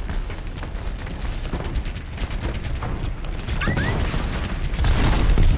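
Gunfire from a game rattles rapidly.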